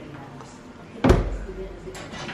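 A small fridge door thumps shut.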